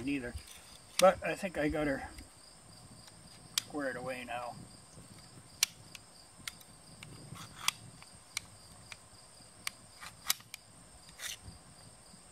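Metal parts of a handgun click and clack as they are taken apart.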